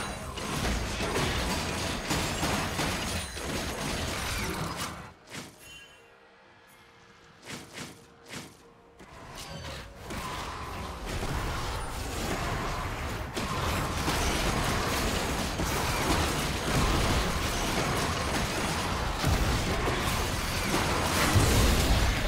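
Fantasy battle sound effects clash, zap and burst in quick succession.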